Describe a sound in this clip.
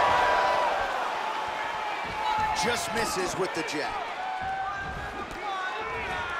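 A crowd cheers and whistles in a large arena.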